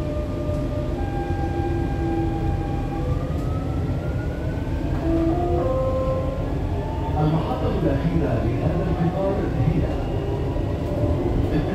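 An electric train's motor whines, rising in pitch as it speeds up.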